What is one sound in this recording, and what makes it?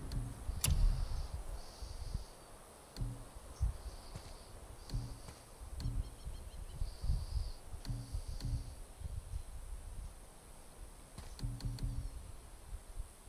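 Soft menu clicks sound as a selection moves up and down a list.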